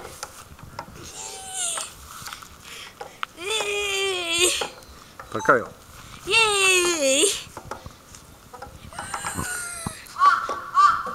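A young girl squeals and laughs close by.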